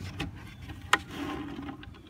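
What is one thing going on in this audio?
Loose soil pours and patters out of a plastic bin.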